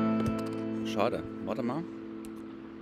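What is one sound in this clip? A man speaks calmly close to a microphone.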